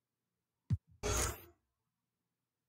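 A brief whoosh sounds as a choice is confirmed.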